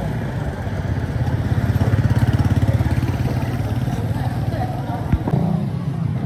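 A small motorcycle passes close by on a street.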